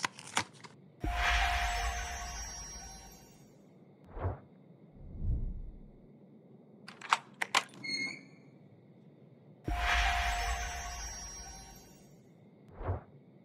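A bright magical chime shimmers and slowly fades.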